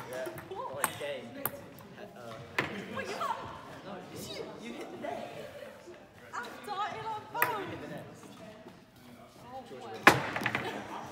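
A ping-pong ball clicks sharply on paddles and a table.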